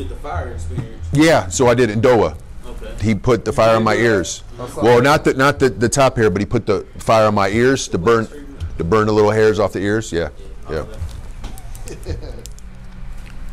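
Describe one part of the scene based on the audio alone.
A man speaks animatedly nearby.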